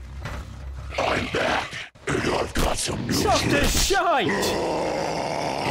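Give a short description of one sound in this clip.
A monster growls and shrieks close by.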